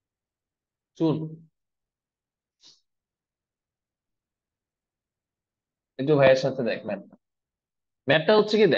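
A young man speaks calmly and clearly into a close microphone, in short bursts with pauses.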